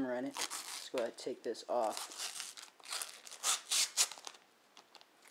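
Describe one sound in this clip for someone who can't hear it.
Thin plastic film crinkles and rustles as it is peeled away.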